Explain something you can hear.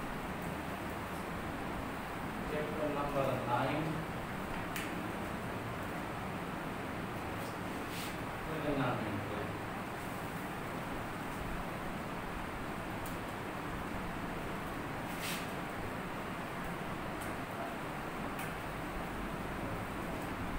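A marker squeaks across a whiteboard.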